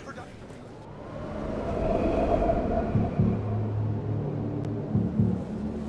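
Waves splash against a bridge.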